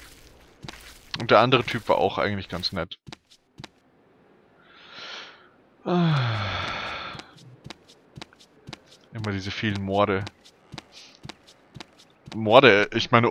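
Footsteps tap quickly on wooden floorboards.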